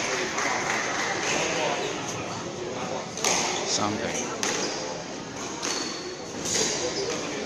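A squash ball smacks against the walls of an echoing court.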